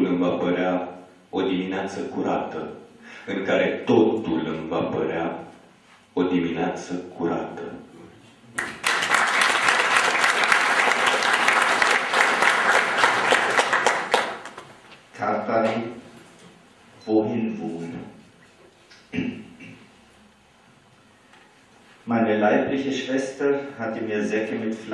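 An elderly man speaks calmly through a microphone in a room.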